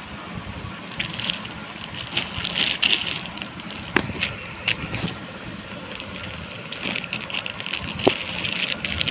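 A plastic wrapper crinkles and rustles as hands handle it.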